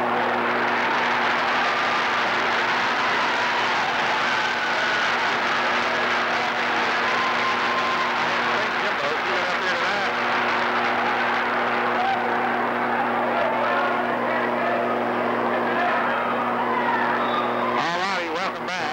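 A crowd cheers and shouts loudly in a large echoing gym.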